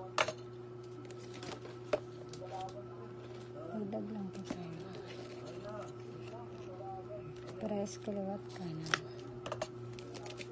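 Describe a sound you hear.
Plastic cups click and crackle as they are handled and stacked.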